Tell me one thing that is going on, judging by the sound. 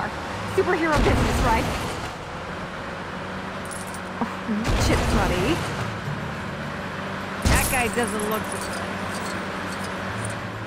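A car engine hums as a car drives along a street.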